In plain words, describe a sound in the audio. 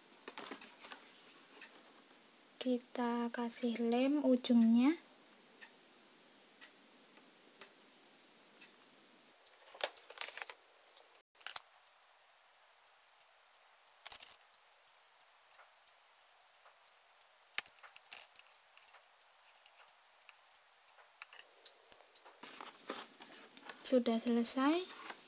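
Fingers rustle and tap softly.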